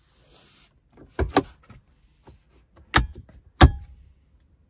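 A plastic console lid clicks open with a knock.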